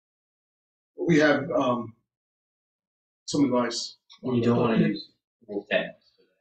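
A man speaks calmly in short phrases, heard through an online call.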